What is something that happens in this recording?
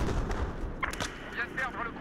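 Gunfire crackles in short bursts nearby.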